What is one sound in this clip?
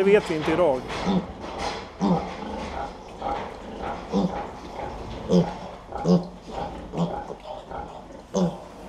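A sow grunts softly and rhythmically.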